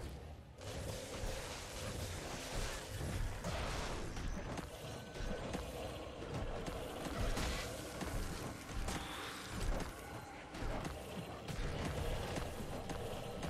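Magic spells crackle and burst in rapid bursts during a fight.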